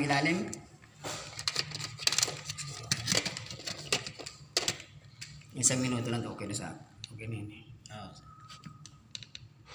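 Plastic parts click and knock as they are handled up close.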